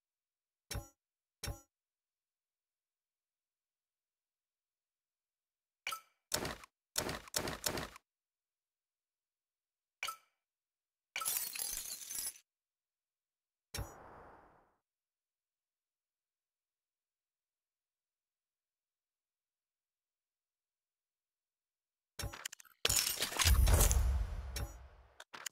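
Short game menu clicks and chimes sound now and then.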